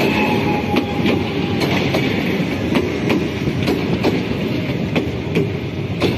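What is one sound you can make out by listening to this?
An electric passenger train rolls past close by.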